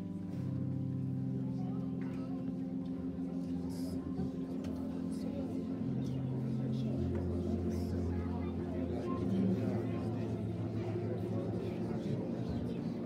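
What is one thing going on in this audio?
A woman prays aloud through a microphone in an echoing hall.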